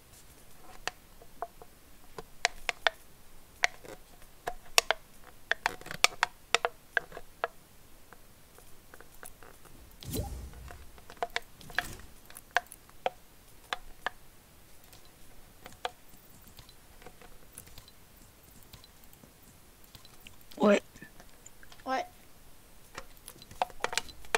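Game menu clicks tick sharply as options are selected.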